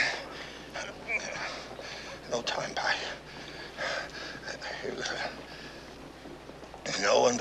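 Another man answers in a strained, weak voice.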